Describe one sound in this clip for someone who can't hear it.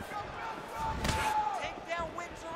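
A fighter's punch lands with a sharp thud.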